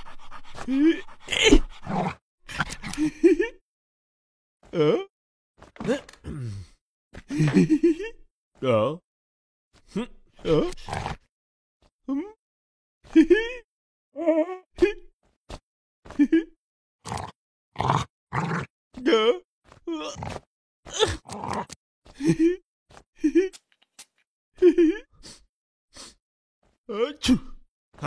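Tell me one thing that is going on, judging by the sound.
A man speaks with animation in an exaggerated cartoon voice.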